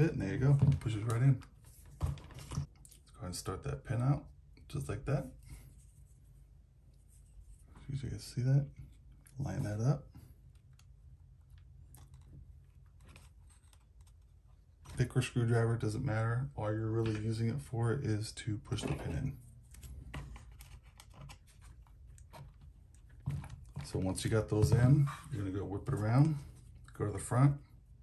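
Small plastic parts click and rattle as they are fitted together.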